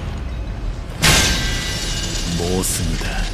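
A sword clashes against metal with a ringing scrape.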